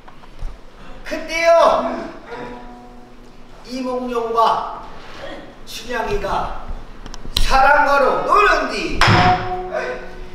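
A young man sings expressively in an echoing hall.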